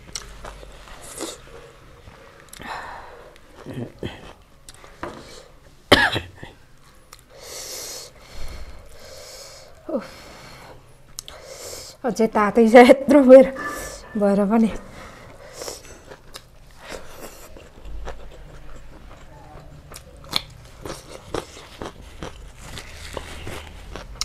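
A hand squishes and mixes rice close by.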